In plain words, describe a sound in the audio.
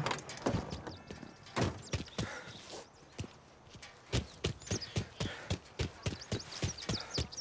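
Footsteps tap on pavement at a steady pace.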